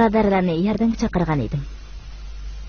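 A woman sings out in a long, wavering voice.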